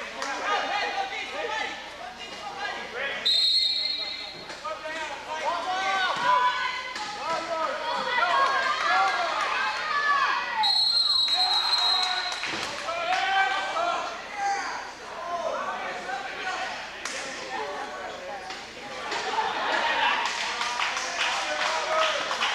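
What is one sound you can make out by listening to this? Many people talk and chatter in a large echoing gym.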